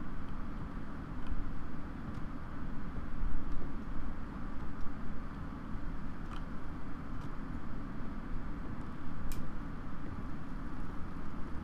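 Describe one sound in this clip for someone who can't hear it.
Slow footsteps tread on a wooden floor indoors.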